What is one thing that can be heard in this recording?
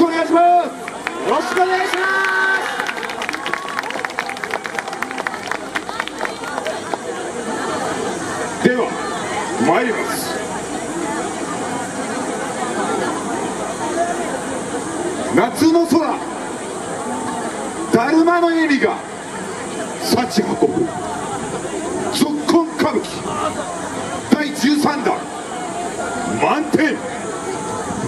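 Young women dancers shout rhythmic calls together.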